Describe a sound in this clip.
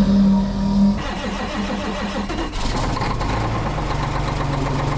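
A large diesel engine starts and rumbles steadily.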